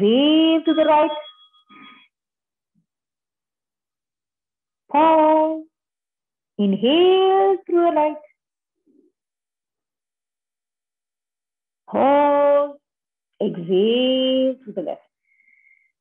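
A young woman speaks calmly and slowly in short phrases, close by, with long pauses between them.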